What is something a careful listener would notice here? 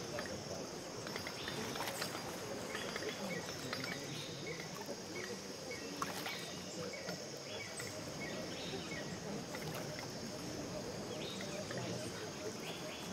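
Waves wash gently onto a sandy shore.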